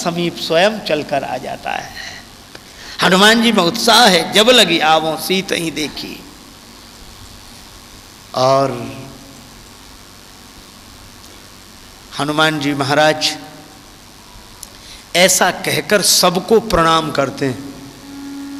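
A man speaks with animation into a microphone over a loudspeaker.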